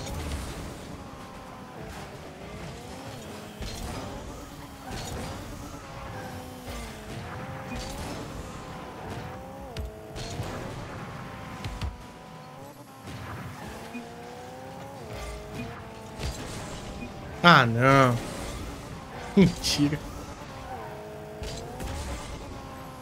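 A car engine hums and revs steadily, rising and falling in pitch.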